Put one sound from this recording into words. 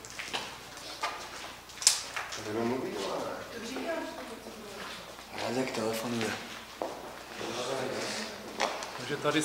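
Footsteps crunch on a gritty floor.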